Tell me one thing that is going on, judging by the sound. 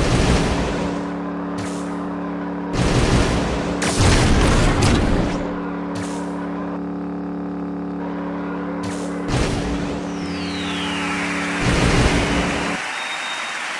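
A small engine hums steadily.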